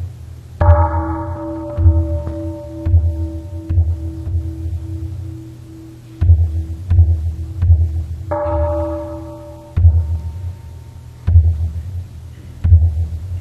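A group of men chant together in low, deep voices.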